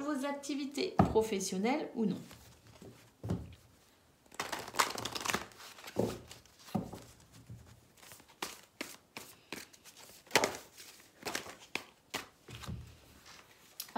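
A deck of cards is shuffled with soft slaps and rustles.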